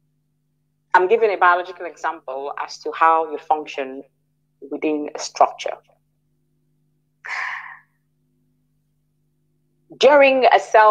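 A woman speaks calmly, with pauses.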